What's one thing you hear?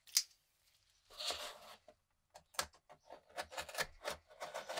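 A cardboard box scrapes and taps against a wooden bench.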